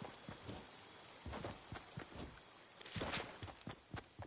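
Wooden walls are quickly built with knocking thuds.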